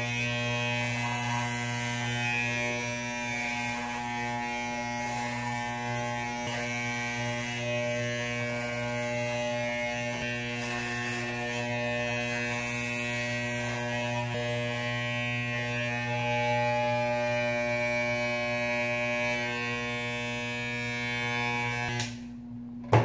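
Electric hair clippers buzz steadily close by, then cut off.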